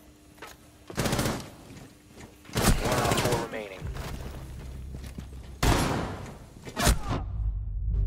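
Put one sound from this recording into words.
Gunshots crack in short, loud bursts.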